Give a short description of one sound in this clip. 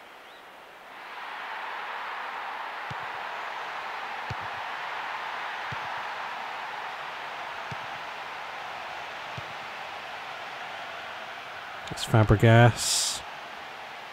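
A large crowd murmurs steadily, as if heard across a stadium.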